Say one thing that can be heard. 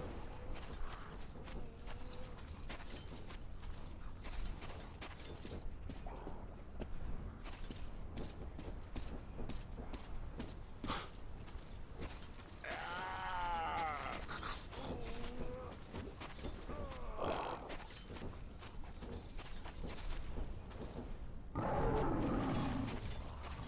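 Footsteps crunch on dry gravel.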